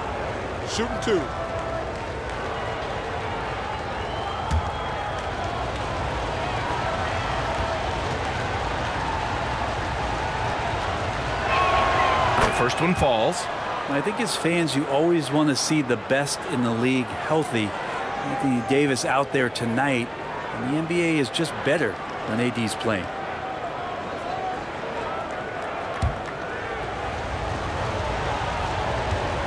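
A large crowd murmurs steadily in an echoing arena.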